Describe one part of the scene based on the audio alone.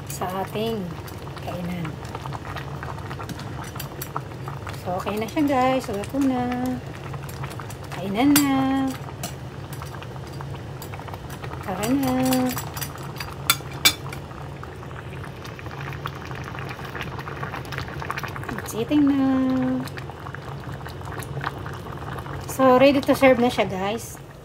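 Soup bubbles and simmers in a pot.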